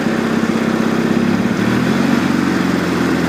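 A riding mower engine revs up.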